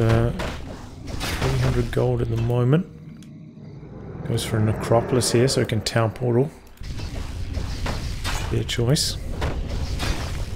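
Magic spells crackle and zap in a fantasy battle.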